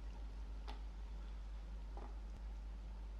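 A thin strip of clay taps and scrapes against a wooden board.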